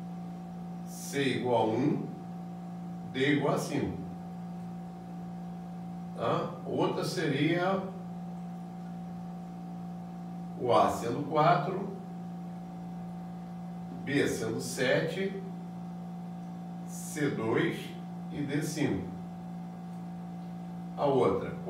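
A man speaks calmly in short phrases with pauses, close by.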